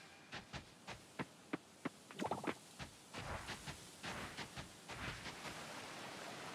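Footsteps pad quickly along a dirt path.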